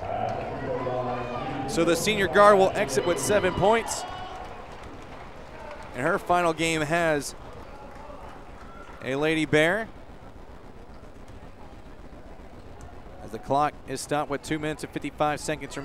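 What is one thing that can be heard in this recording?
A crowd shouts and cheers in bursts in a large echoing hall.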